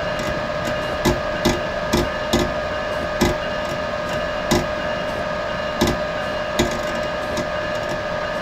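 A train's motor hums steadily.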